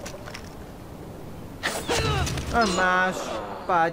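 A suppressed rifle fires a single muffled shot.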